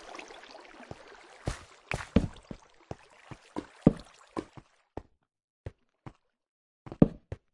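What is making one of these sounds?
Lava bubbles and pops nearby.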